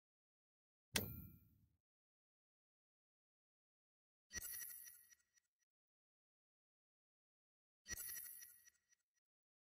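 A soft electronic chime sounds a few times.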